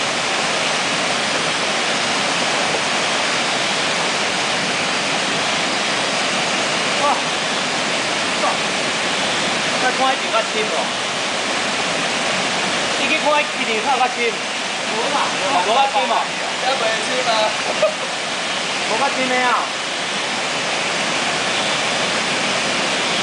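A waterfall rushes and splashes steadily close by.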